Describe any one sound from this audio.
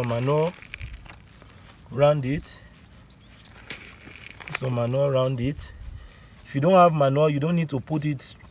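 Hands crumble and pat down loose soil.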